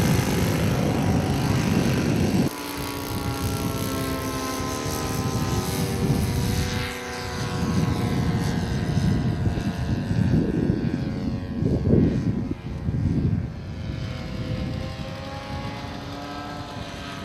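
Wind buffets the microphone in gusts outdoors.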